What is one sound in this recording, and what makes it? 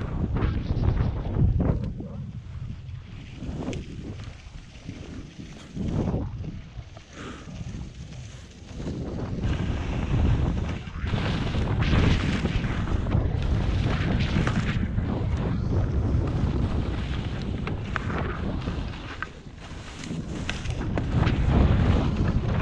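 Skis scrape and hiss over snow.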